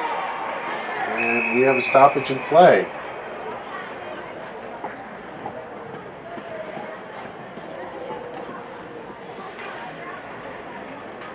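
Ice skates scrape across the ice.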